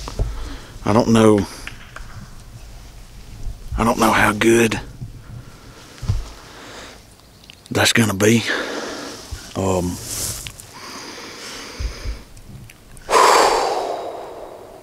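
A man blows a mouth call, making sharp turkey yelps close by.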